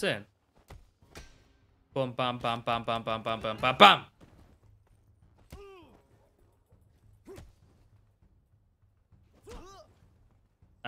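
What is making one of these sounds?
Punches and kicks land with dull thuds.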